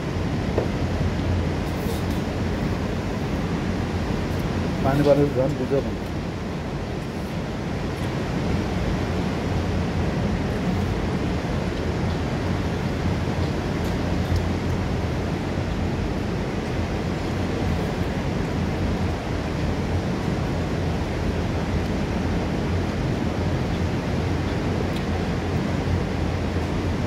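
A waterfall roars steadily into a rocky pool.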